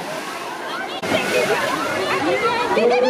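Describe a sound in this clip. Children and young people chatter and shout in the water.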